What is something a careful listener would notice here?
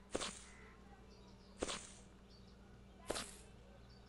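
A plastic bucket thuds down onto grass.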